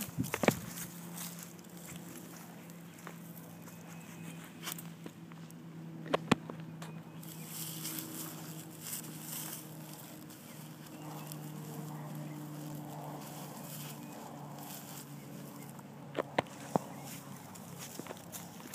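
A dog digs and scratches at loose soil.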